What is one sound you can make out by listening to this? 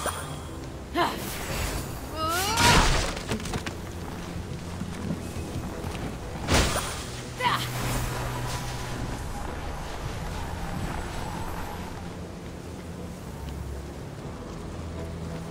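Footsteps crunch through snow.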